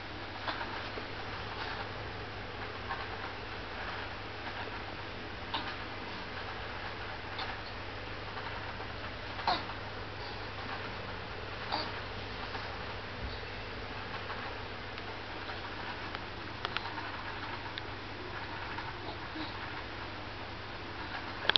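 A small child moves about on soft bedding with light thumps and rustles.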